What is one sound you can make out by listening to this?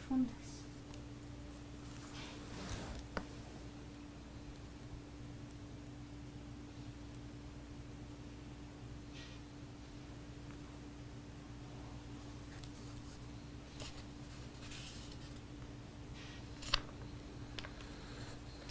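A woman breathes slowly and softly while asleep.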